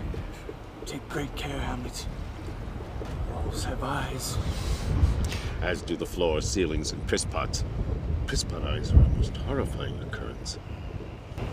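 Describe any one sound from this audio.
A middle-aged man speaks calmly and closely.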